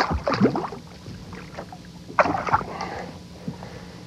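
A fish splashes in the water as it is lifted out.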